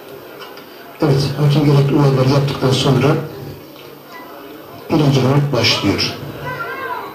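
A man speaks loudly and briskly in short bursts.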